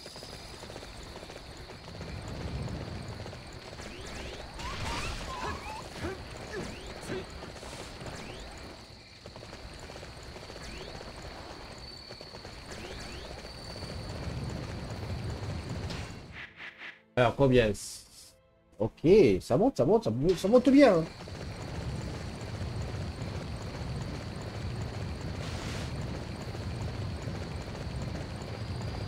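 Horse hooves thud steadily at a gallop.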